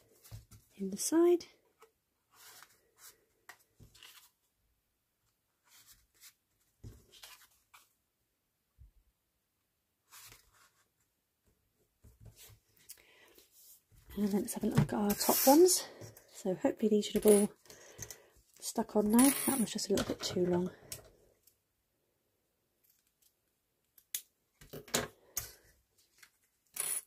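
Stiff card rustles and taps as hands handle it.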